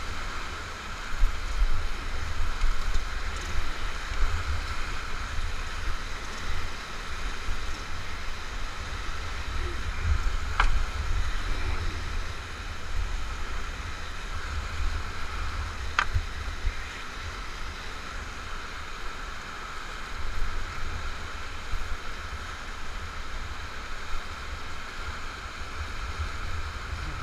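Whitewater rushes and roars around a raft.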